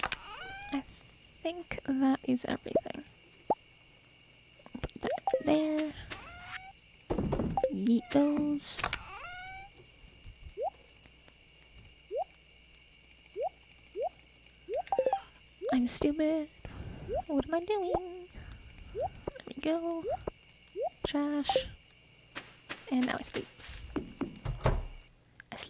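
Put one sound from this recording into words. Short video game menu blips and pops sound as items are picked up and moved.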